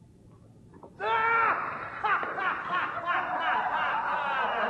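A man laughs loudly and shouts with glee.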